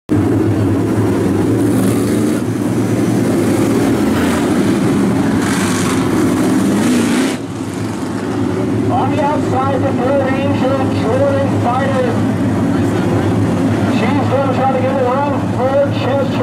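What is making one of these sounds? Race car engines roar and rumble loudly nearby.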